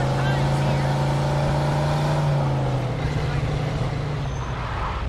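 Tyres roll over a snowy road.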